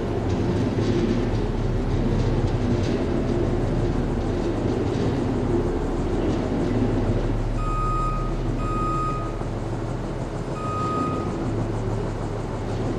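A motorized platform hums and rumbles steadily as it moves.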